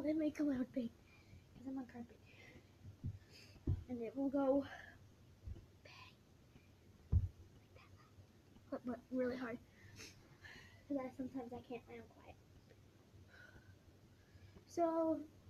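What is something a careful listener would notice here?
A young girl talks close to a microphone, with animation and in short bursts.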